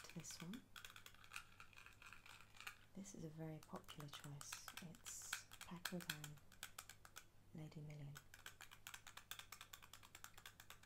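Fingernails tap and click on a glass bottle.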